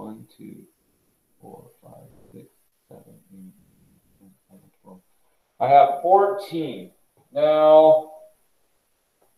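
A man speaks calmly through a microphone, in bursts with pauses.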